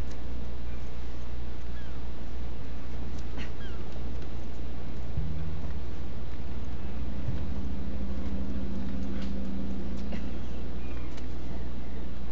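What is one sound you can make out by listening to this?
Footsteps shuffle softly on hard ground.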